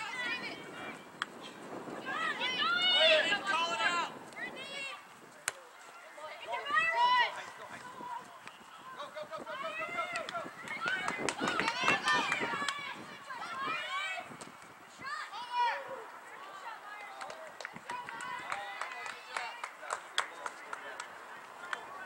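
Young women shout and call out to each other across an open field.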